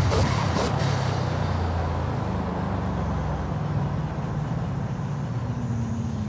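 A sports car engine slows and idles down with a lower hum.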